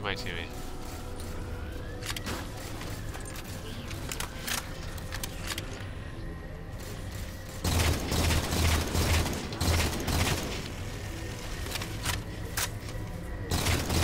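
Guns fire in sharp, quick bursts.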